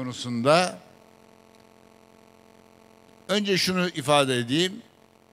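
An elderly man speaks formally into a microphone over loudspeakers, with pauses.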